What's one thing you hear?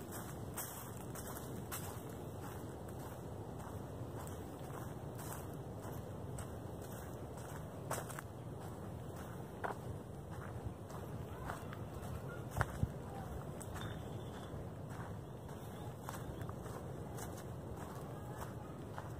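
Footsteps crunch on dry leaves along a path.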